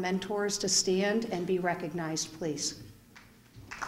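A woman speaks into a microphone over loudspeakers.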